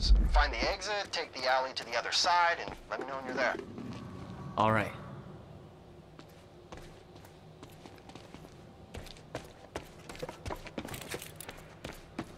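Footsteps run over gritty, littered ground.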